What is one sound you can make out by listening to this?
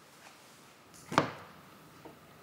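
A book is set down on a wooden table with a soft thud.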